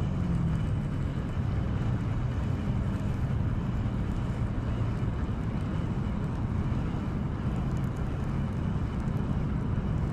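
Wind rumbles outdoors by a river.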